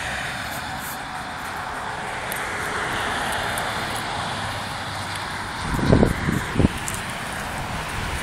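A dog pants quickly.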